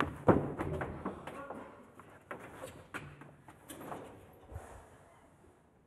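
Footsteps tread across a wooden stage.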